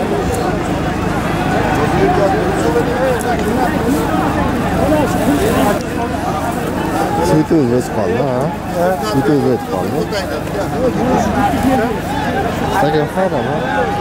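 A large crowd of men chatters and shouts outdoors.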